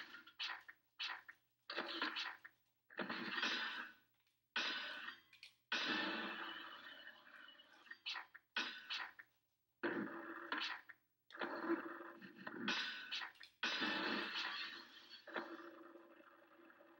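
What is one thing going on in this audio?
Video game skateboard sounds of wheels rolling and grinding play through a television speaker.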